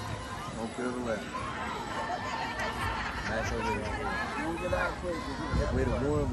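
Young women call out and cheer outdoors.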